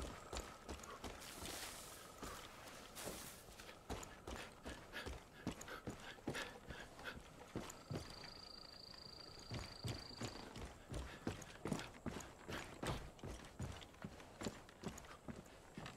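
Footsteps thud steadily on ground and wooden boards.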